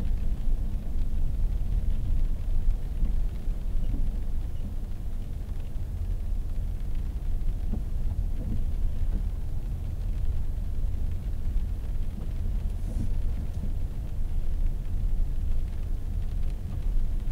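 Tyres hiss on wet pavement.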